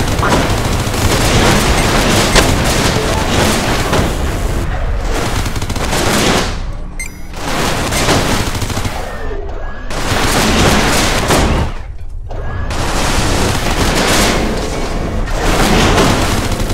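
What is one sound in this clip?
Laser guns fire in rapid bursts.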